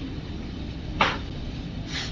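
A blade strikes stone with a sharp crack.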